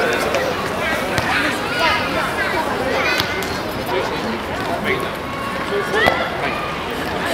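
A crowd of men, women and children chatters outdoors.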